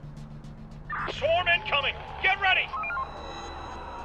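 A loud warning alarm blares in short pulses.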